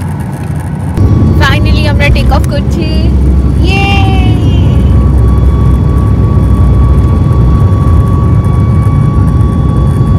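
A plane's engines roar loudly.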